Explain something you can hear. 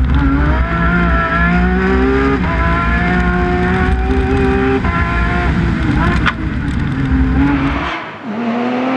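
A car engine roars from inside the car, rising and dropping in pitch as it shifts gears.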